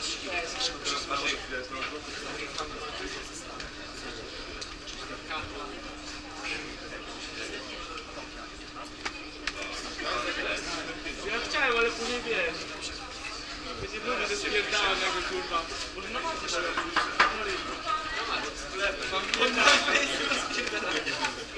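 Voices of a crowd murmur and call out in a large echoing hall.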